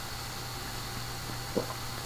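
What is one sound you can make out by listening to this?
A young man gulps a drink from a bottle.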